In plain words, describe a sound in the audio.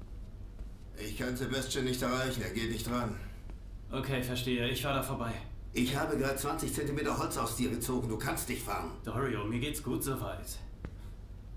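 An older man speaks in a low, stern voice nearby.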